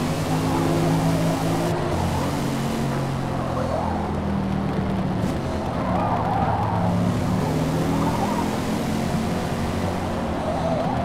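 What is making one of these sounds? A car engine roars loudly, its pitch rising and falling as gears shift.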